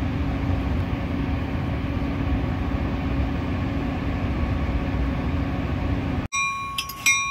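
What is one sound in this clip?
A train rolls along the tracks with a steady low rumble.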